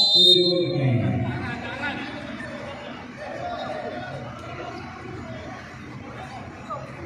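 Young men talk and call out in the distance.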